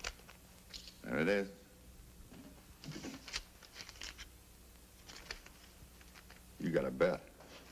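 A man speaks in a low, firm voice, close by.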